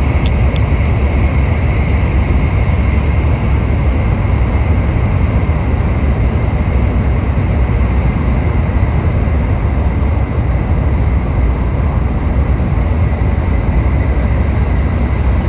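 A vehicle rumbles steadily from inside while driving.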